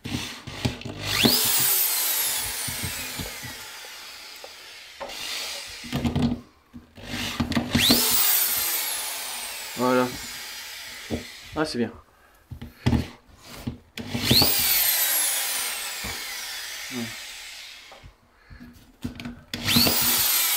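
A cordless drill whirs in bursts, spinning up and slowly winding down.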